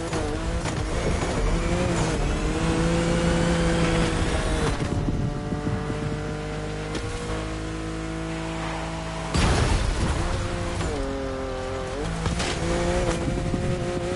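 Exhaust flames pop and crackle behind a racing car.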